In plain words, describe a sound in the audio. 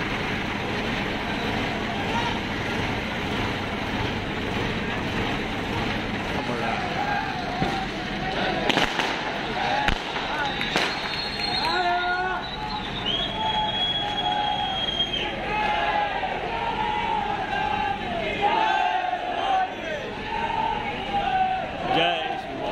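A large outdoor crowd chatters and shouts nearby.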